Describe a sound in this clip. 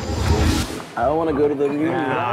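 A man talks with animation.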